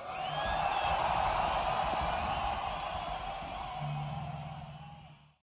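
An electric guitar plays through an amplifier.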